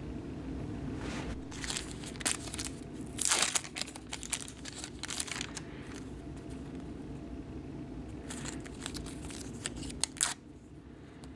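A paper wrapper crinkles and rustles as it is handled.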